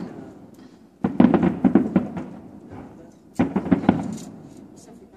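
Fireworks bang and crackle in the distance.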